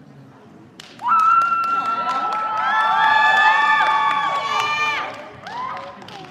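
A small band plays a loud sustained chord in a large echoing hall.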